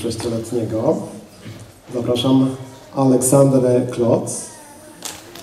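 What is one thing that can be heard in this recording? A man announces through a microphone in a large echoing hall.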